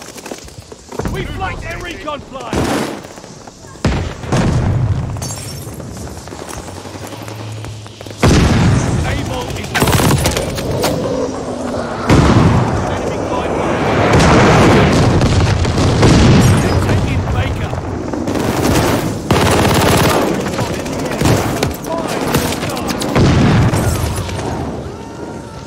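Gunfire bursts in quick volleys.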